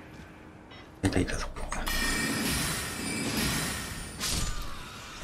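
A magical shimmering chime swells and rings out.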